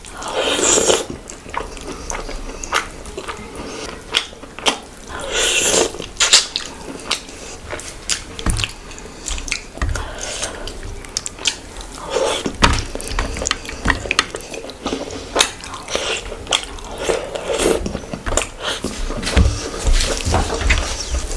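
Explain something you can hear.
A young woman chews food loudly and wetly close to a microphone.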